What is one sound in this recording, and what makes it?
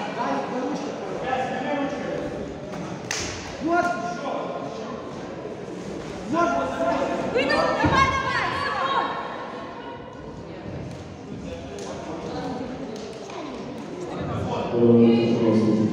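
A woman referee calls out commands.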